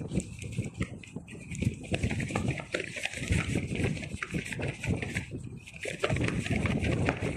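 Stiff fabric rustles and swishes close by.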